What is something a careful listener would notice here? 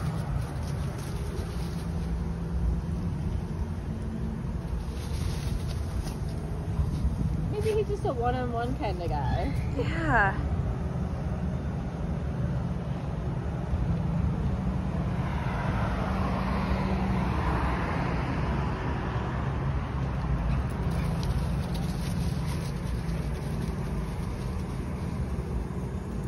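Dogs' paws rustle through dry leaves as they run.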